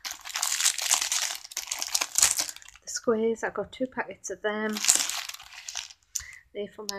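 A plastic wrapper crinkles as it is handled.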